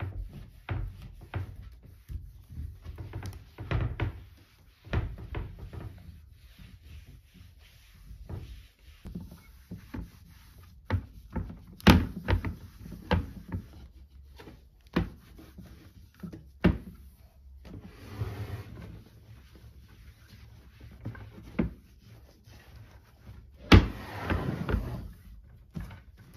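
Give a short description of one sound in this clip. A cloth rubs and wipes across a wooden surface.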